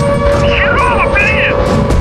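Jet fighters roar overhead.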